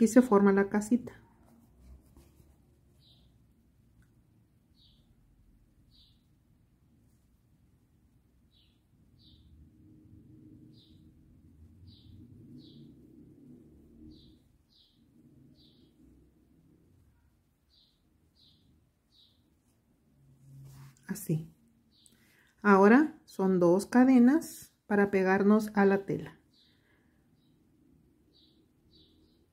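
A metal crochet hook ticks faintly as it pulls thread through stitches.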